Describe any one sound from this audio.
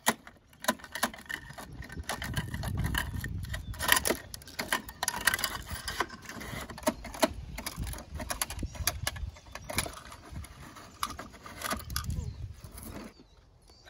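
A toy garbage truck's plastic arm clicks and clatters as it is worked by hand.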